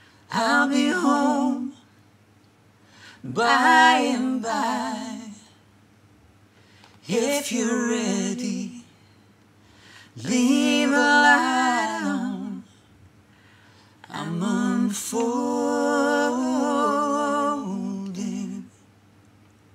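A woman sings in phrases with pauses, close to a microphone.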